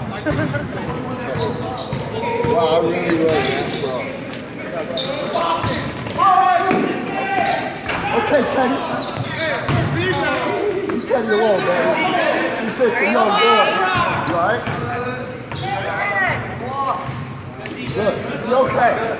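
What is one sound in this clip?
A crowd of children and adults shouts and cheers loudly in an echoing gym.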